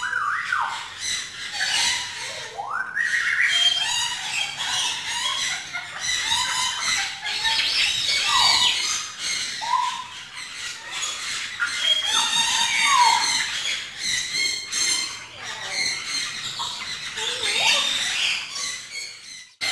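Parrots chatter and squawk loudly close by.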